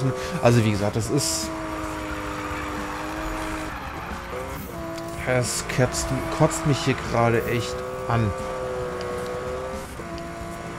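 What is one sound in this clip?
A car engine roars and revs up and down sharply.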